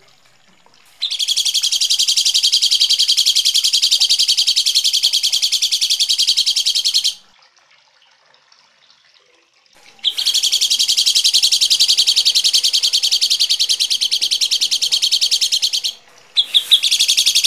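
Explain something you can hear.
A bird sings harsh, rapid, buzzing chatter in loud bursts.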